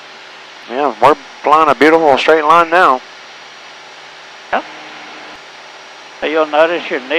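A man speaks through a headset intercom.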